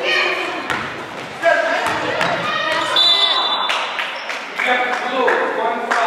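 Children's voices shout and cheer in a large echoing gym.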